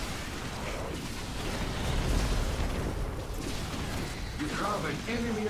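Game battle effects rumble and crackle.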